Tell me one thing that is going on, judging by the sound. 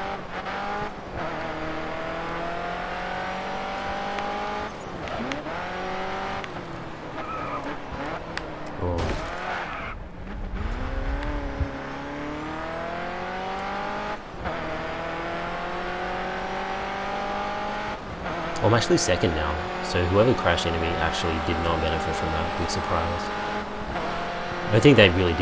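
A racing car engine roars, rising in pitch through each gear and dropping at each shift.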